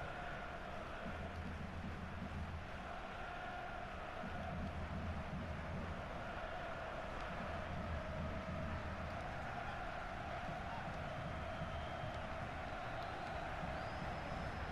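A stadium crowd roars and chants steadily.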